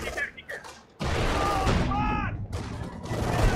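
Rifles and machine guns fire in rapid bursts.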